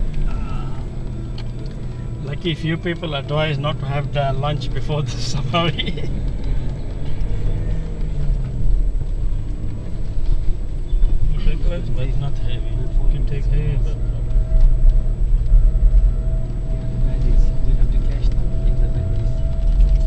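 A car engine rumbles low and steady while driving over sand.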